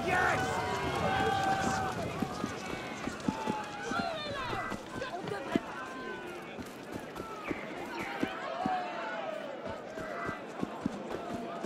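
Footsteps run quickly over stone pavement.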